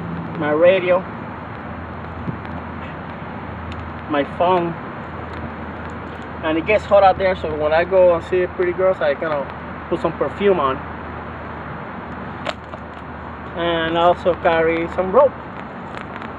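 A young man talks calmly close by, outdoors.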